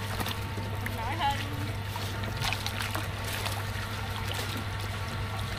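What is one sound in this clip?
Water splashes and sloshes as a net is hauled through it.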